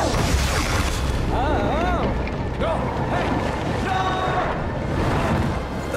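A strong wind roars and howls through a snowstorm.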